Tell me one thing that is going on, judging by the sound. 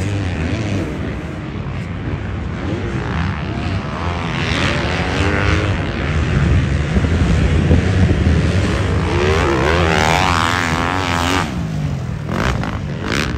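A dirt bike engine revs loudly, its whine rising and falling as it speeds up and slows down.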